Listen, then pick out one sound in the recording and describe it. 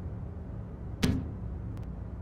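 A plastic case knocks as it is picked up.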